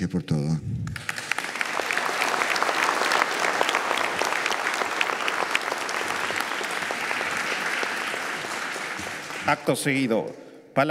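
A large crowd applauds in a large echoing hall.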